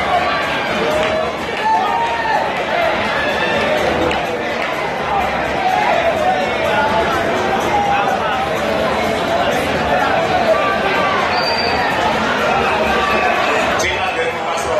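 Loud pop music with a thumping beat plays through loudspeakers.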